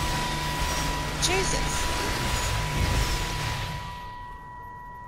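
A loud blast roars and crackles, then fades away.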